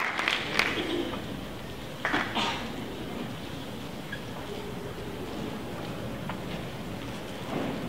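A piano rolls across a wooden stage on its wheels.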